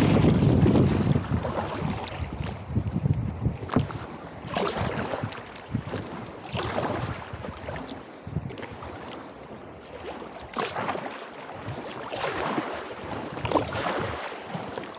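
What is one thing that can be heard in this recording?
River water splashes and laps against the side of a boat.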